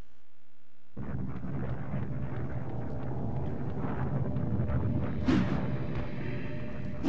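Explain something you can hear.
Fires crackle and roar nearby.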